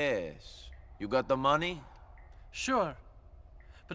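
A man answers briefly in a gruff voice.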